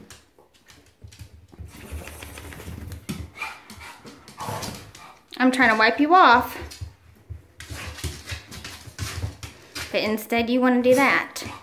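A dog's paws scrabble and patter on a hard floor.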